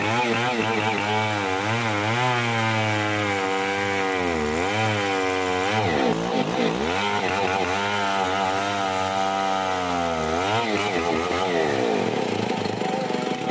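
A two-stroke chainsaw rips lengthwise through a hardwood log, its engine pitch dipping and rising under load.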